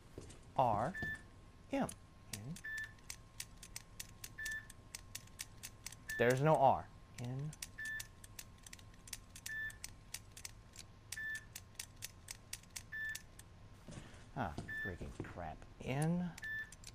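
A combination lock dial clicks as it turns.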